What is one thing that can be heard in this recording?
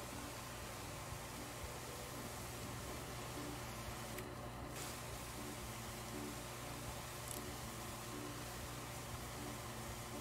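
A pressure washer hisses as it sprays water steadily.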